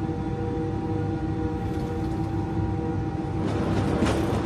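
A jet engine hums and whines steadily, heard from inside the cabin.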